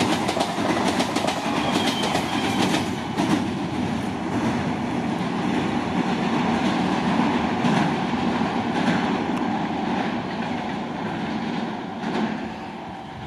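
An electric train rumbles and clatters past close by.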